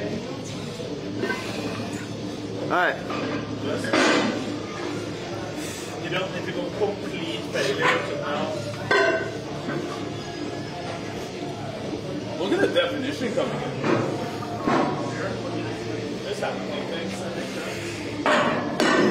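A young man grunts and breathes hard with strain, close by.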